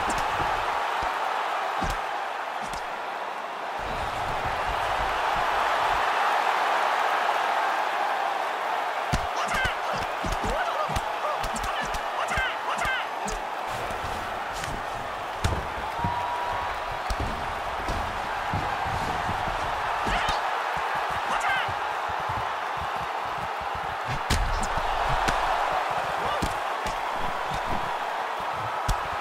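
A large crowd roars steadily in an arena.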